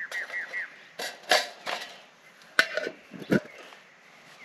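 Metal cookware clinks and clatters as it is handled close by.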